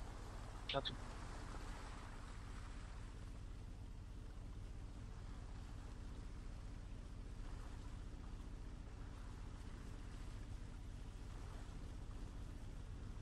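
Water splashes against a moving boat's bow.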